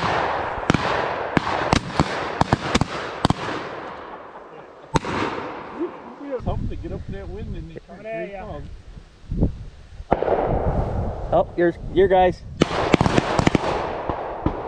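Gunshots crack sharply outdoors, one after another, with a short echo.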